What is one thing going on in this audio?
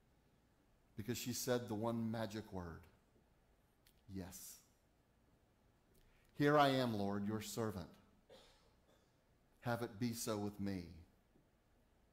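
An older man speaks calmly in short phrases with pauses, in a quiet echoing room.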